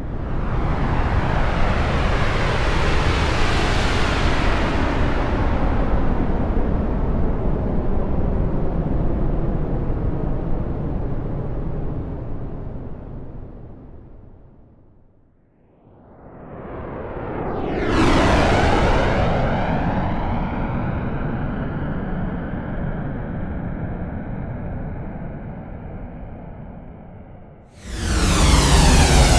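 Jet engines roar loudly overhead, fade away, then sweep past again with a rushing whoosh.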